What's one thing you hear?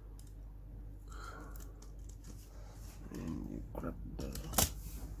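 Small plastic parts click and tap as hands handle a toy car.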